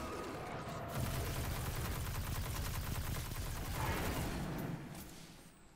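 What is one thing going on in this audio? Energy blasts crackle and zap.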